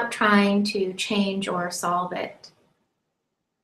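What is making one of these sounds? A young woman speaks calmly and softly, close to a microphone.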